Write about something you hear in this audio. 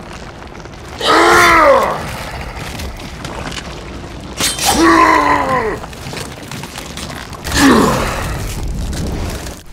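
A monstrous creature roars with deep, falling growls.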